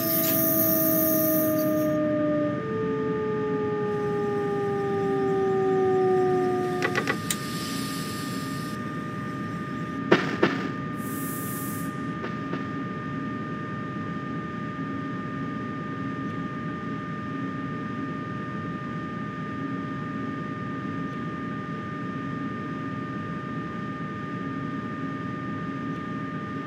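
A train's electric motor hums steadily as it runs along the track.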